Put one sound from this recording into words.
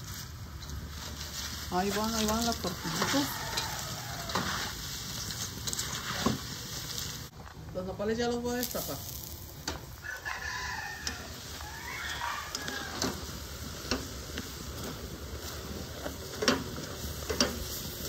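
A metal spatula scrapes and stirs in a frying pan.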